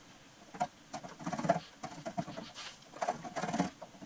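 A metal tool scrapes and clicks against a metal block.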